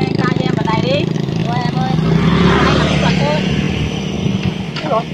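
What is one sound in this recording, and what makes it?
A motor scooter passes close by.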